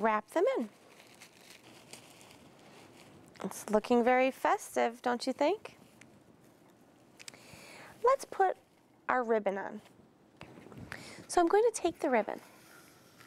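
Leaves and branches rustle as a wreath is handled.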